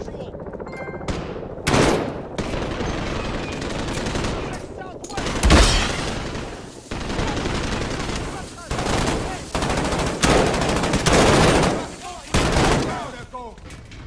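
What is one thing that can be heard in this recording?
A rifle fires sharp shots in short bursts.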